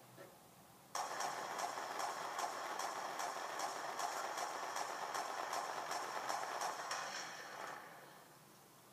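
Gunfire from a video game plays through a television speaker.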